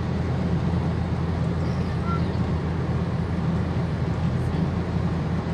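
Tyres roll with a steady rumble on the road.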